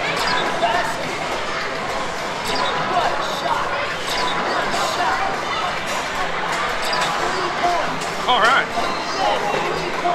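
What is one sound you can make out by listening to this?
Basketballs thud against a backboard and rattle down a ramp.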